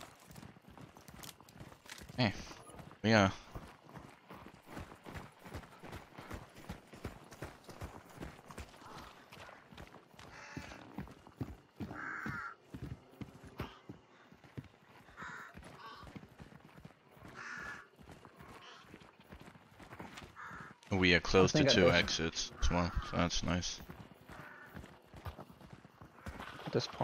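Footsteps crunch quickly along a dirt path.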